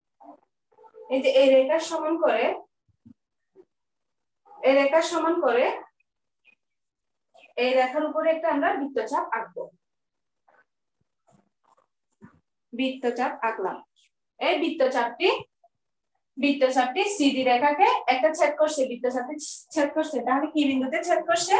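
A young woman speaks calmly and clearly close by, in short bursts with pauses.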